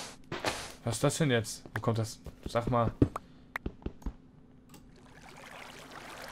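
Water trickles and splashes nearby.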